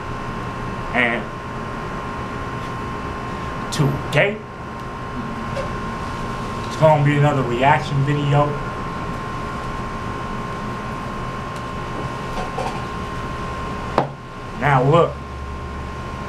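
A young man speaks close by in short bursts, with animation.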